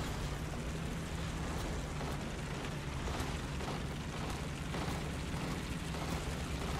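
A tank engine rumbles and roars steadily.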